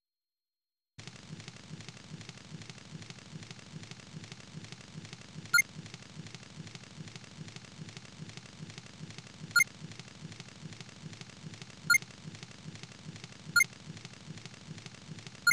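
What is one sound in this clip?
A campfire crackles steadily.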